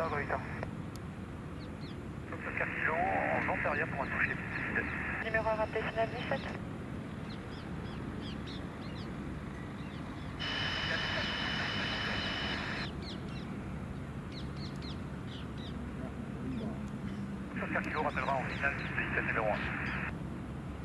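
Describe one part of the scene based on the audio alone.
A small jet's engines whine and rumble steadily as the jet rolls along a runway.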